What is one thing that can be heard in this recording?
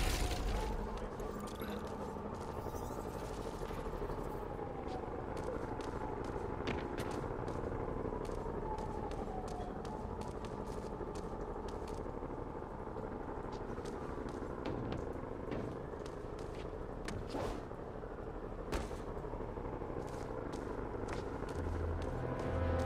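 Footsteps patter quickly across a rooftop.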